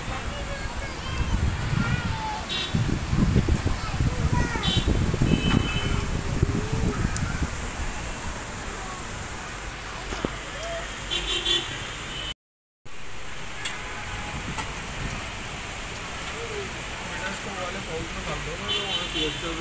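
Heavy rain falls on a wet street and rooftops outdoors.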